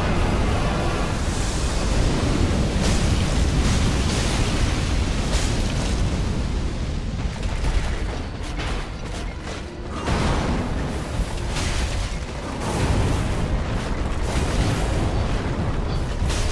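Icy breath blasts and hisses in bursts.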